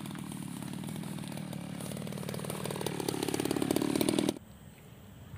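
A brush cutter engine runs and revs higher, then cuts off.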